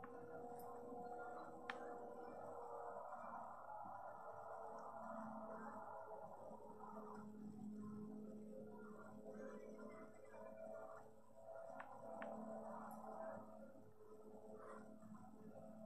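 A racing car engine roars from a television's speaker, rising and falling in pitch.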